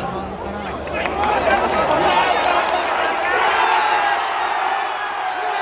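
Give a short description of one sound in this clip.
A large stadium crowd erupts in loud cheering and roaring.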